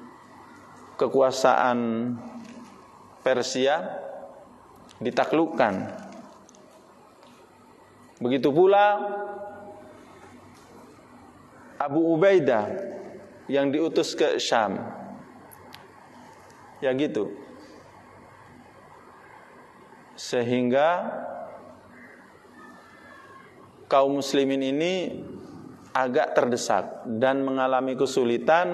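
A middle-aged man speaks calmly into a microphone in short phrases, with pauses between them, in a room with some echo.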